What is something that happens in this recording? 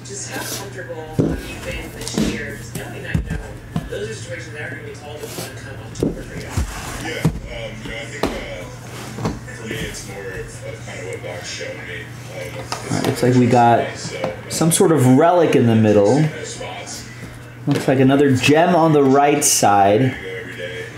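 Hands knock and tap against a hard plastic case.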